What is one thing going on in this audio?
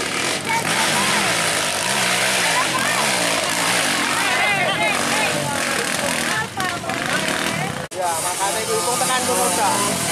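Dirt bike engines rev and whine loudly up a hill.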